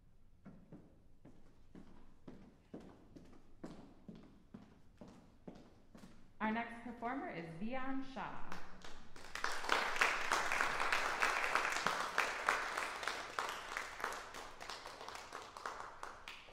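An audience applauds in an echoing hall.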